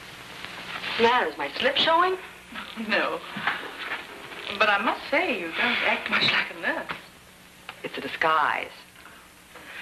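A woman speaks calmly and firmly nearby.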